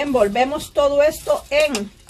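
A hand rustles food in a foil tray.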